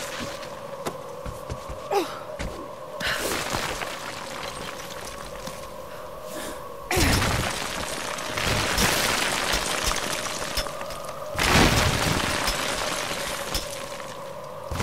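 Hands and boots scrape and knock against rough stone during a climb.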